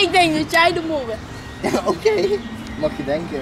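A teenage boy talks close by with animation.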